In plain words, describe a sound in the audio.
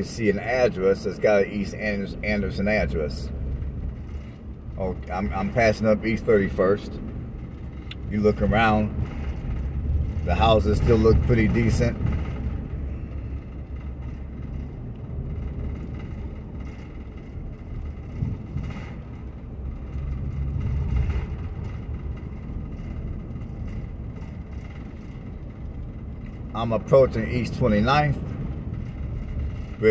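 A car engine hums low and steady while driving slowly.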